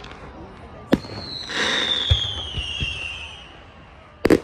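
A firework rocket whistles as it shoots up.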